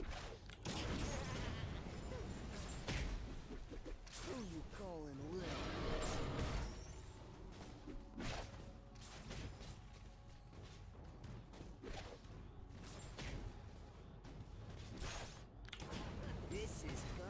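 Game combat sound effects clash and crackle with magical blasts.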